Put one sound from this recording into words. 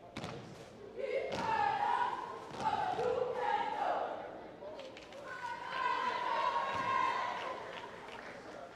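Young women chant together loudly in an echoing gym.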